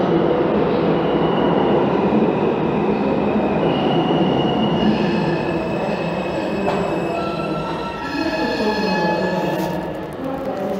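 Train brakes squeal with high steady whines as the train slows.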